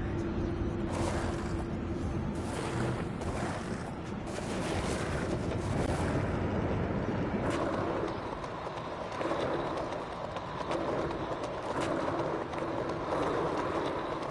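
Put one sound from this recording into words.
Roller skates roll and rattle over pavement.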